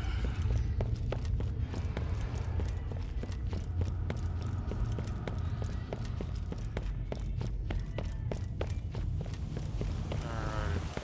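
Quick footsteps clank on a metal floor.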